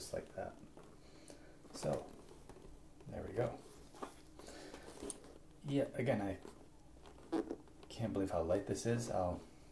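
A hard plastic helmet clicks and knocks as it is handled.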